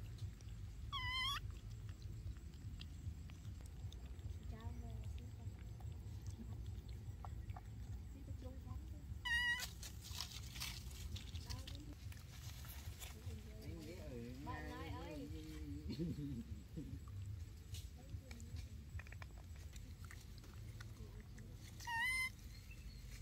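A baby monkey gives short, high squeaks.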